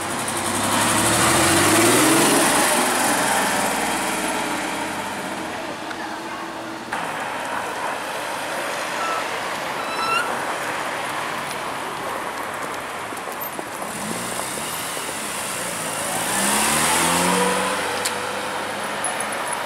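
A sports car engine revs loudly and roars past.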